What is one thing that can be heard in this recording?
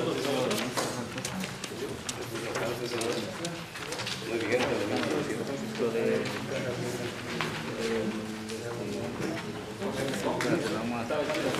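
Papers rustle and shuffle.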